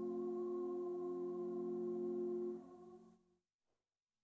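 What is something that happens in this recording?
A young woman sings a long held note in a large echoing hall.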